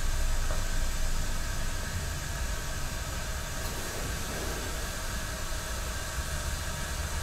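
A kettle simmers with a soft, steady hiss.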